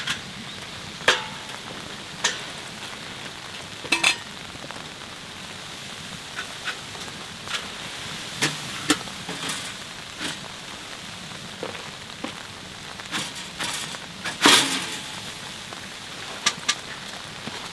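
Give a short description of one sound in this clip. A metal pipe knocks and clanks against a fitting overhead.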